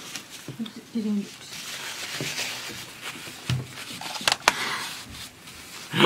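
A young woman laughs close to a microphone.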